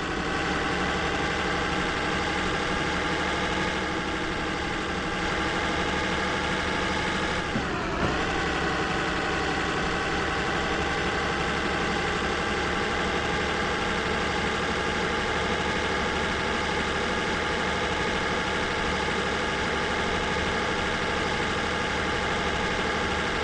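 A truck engine hums steadily, with a brief dip in pitch as the gears shift.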